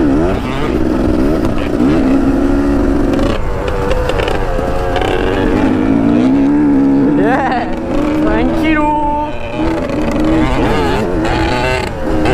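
A second dirt bike engine buzzes nearby.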